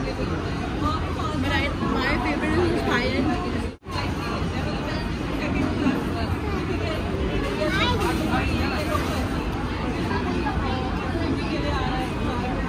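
A crowd of people chatters in a busy, echoing hall.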